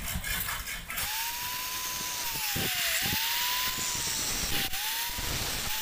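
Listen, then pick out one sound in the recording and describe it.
An angle grinder whines steadily at high speed.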